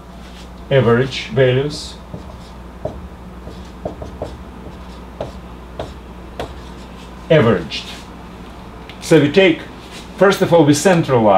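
An older man speaks calmly and close by, in short phrases.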